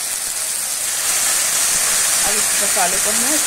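A thick paste drops into hot oil and the sizzling grows louder.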